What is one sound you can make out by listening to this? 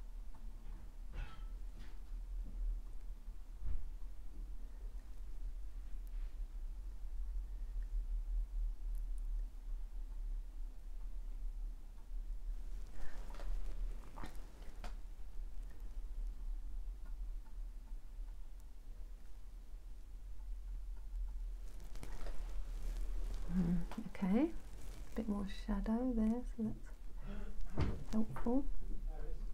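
A brush dabs and strokes softly on canvas.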